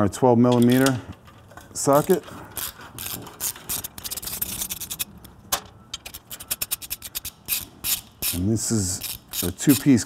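Metal tools clink and click against a motorcycle exhaust.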